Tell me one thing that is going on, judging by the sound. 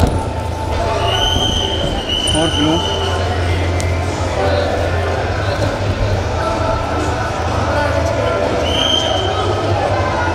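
Shoes squeak on a mat as wrestlers scramble.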